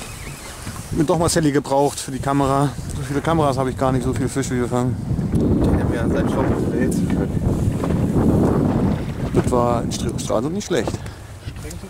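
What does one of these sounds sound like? A man talks with excitement close by.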